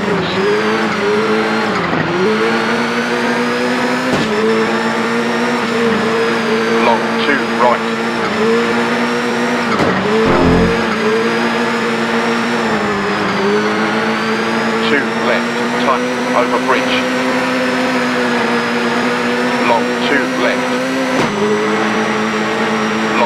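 A rally car engine roars steadily, its pitch dipping briefly at each gear change.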